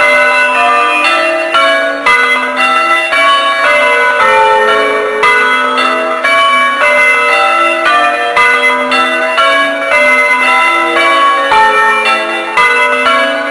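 Large bells ring out in a quick, changing pattern outdoors.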